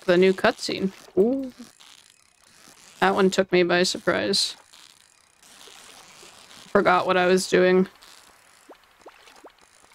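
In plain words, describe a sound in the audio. A fishing reel whirs as a line is reeled in.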